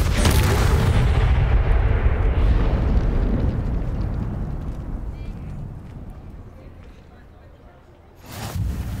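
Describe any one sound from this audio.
A loud magical blast roars and slowly dies away.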